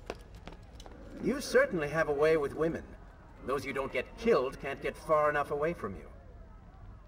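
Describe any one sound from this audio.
A young man speaks.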